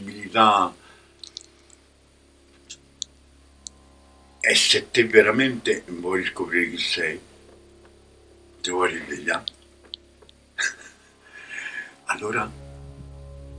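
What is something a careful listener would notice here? An elderly man speaks calmly and with expression, close by, with pauses.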